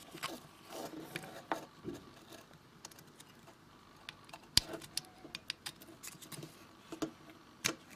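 A plastic connector clicks and scrapes as it is pressed onto metal pins.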